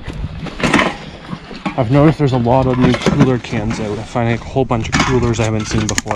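Aluminium cans rattle and clank against each other.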